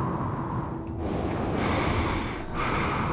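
A heavy hatch hisses and slides open.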